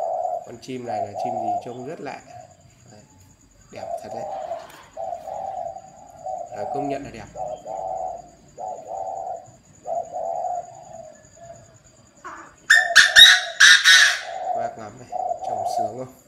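A caged bird calls over and over with short, hooting notes.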